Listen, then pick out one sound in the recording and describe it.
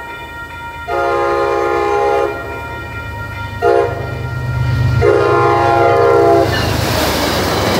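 A diesel locomotive engine rumbles deeply as it approaches.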